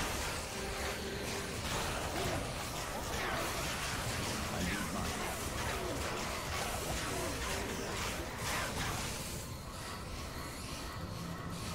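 Game spells crackle and blast during a fight.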